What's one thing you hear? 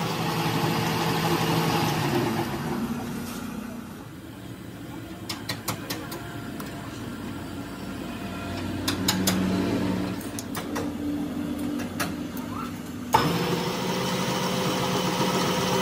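A cutting tool scrapes against spinning metal.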